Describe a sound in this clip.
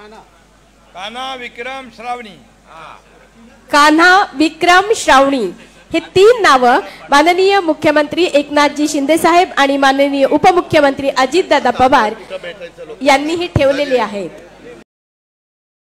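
A man speaks with animation through a loudspeaker.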